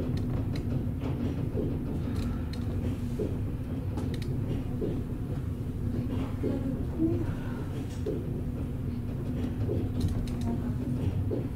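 A suspended railway car rumbles and hums as it runs along its overhead track.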